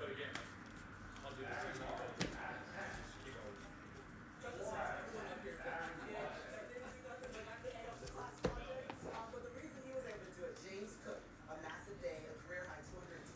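Trading cards rustle and flick as a hand shuffles through them.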